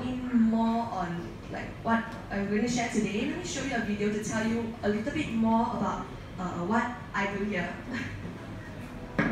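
A young woman speaks calmly through a microphone in a room with a slight echo.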